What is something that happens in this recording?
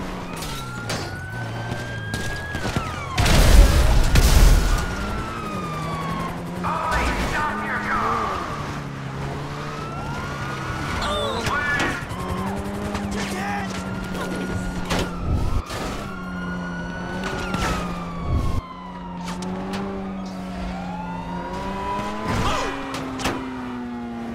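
A sports car engine revs and roars, rising and falling in pitch.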